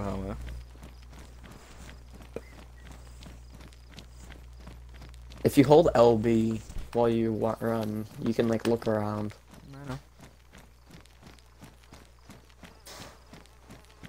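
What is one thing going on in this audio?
Footsteps crunch steadily on a road.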